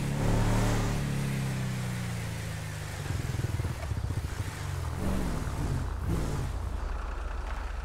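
A truck engine rumbles and revs as the truck drives.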